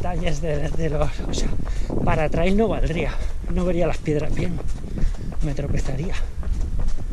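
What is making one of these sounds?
A man talks loudly and with animation close by.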